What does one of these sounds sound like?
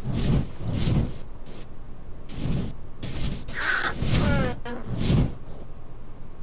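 Fireworks bang with deep booms.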